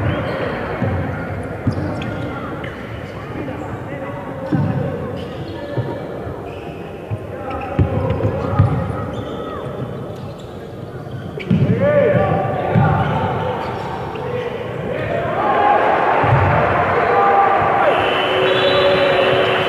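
Men shout and call out across a large echoing gym.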